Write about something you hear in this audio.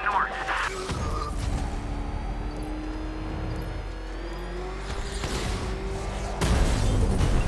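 A powerful car engine roars as a vehicle speeds along.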